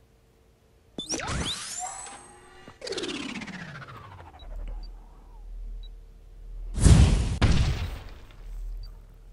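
Cartoon game sound effects whoosh and chime as cards are played.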